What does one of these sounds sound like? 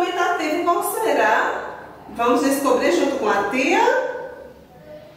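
A woman speaks clearly and calmly close to a microphone.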